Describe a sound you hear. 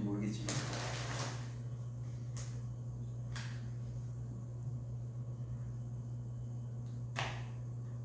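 A paper carton crinkles and rustles as it is handled and opened.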